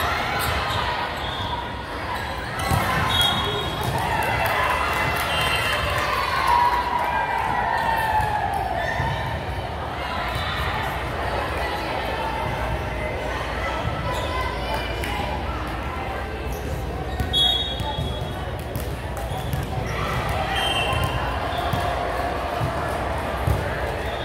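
Volleyballs thump and bounce on a hard floor in a large echoing hall.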